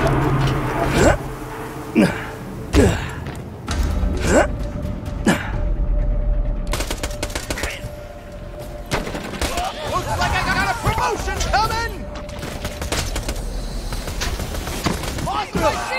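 A gun fires sharp shots in bursts.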